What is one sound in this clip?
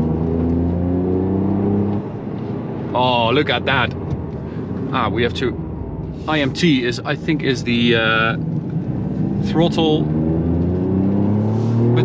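A car engine revs up and down while driving.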